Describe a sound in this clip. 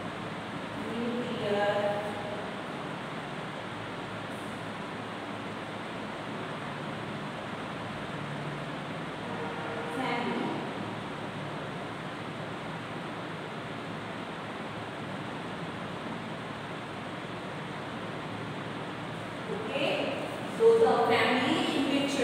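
A woman speaks in short bursts, teaching.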